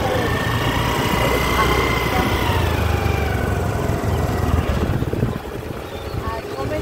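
A motor scooter engine hums steadily while riding.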